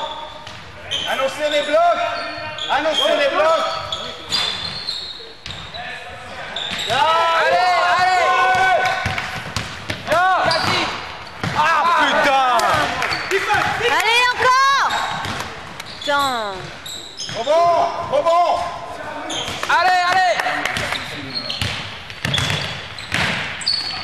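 Sneakers squeak sharply on a hard court floor in an echoing hall.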